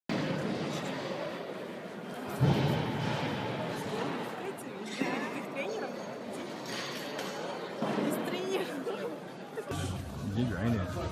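Young men talk casually nearby in a large echoing hall.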